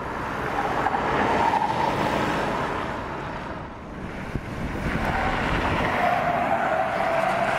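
Tyres roll over asphalt.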